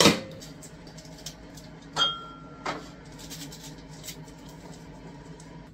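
Plastic parts click and knock as a coffee maker is loaded.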